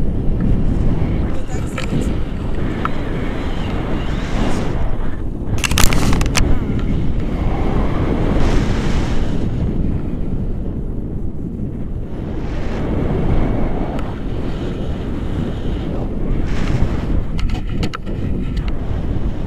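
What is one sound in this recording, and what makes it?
Strong wind roars and buffets past a microphone outdoors.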